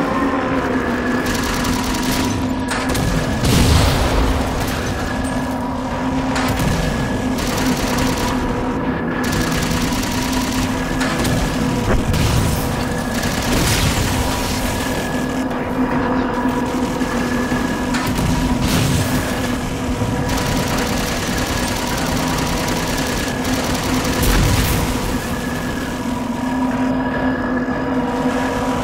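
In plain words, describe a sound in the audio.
A flying craft's engine hums steadily.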